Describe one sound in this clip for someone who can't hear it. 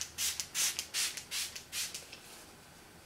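A brush swishes against skin.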